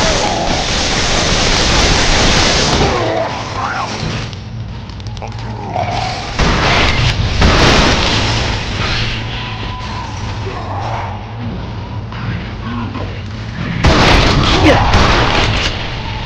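Gunfire and explosions blast in a video game.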